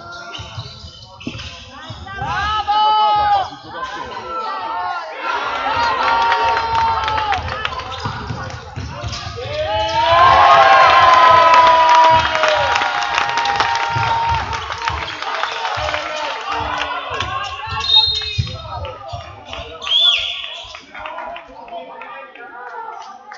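A crowd of spectators cheers and shouts loudly in an echoing hall.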